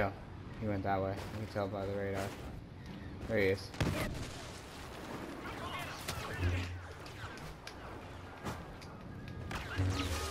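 Blaster shots crack and zap in quick bursts.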